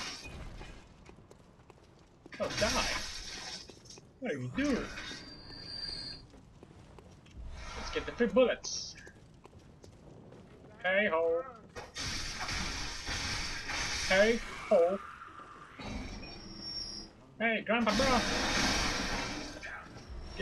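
Blades slash and clang in a fight.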